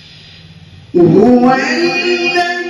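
A young man recites in a loud, melodic chanting voice through a microphone.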